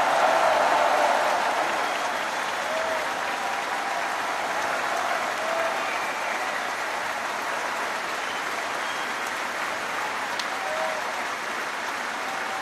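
A large audience applauds and cheers loudly in a big hall.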